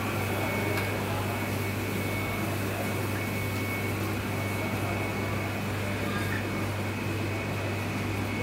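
A metal spoon scrapes and clinks against a metal pot.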